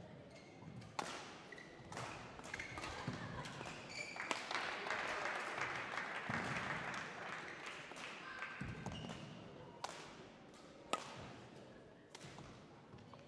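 A shuttlecock is struck sharply back and forth by rackets in an echoing hall.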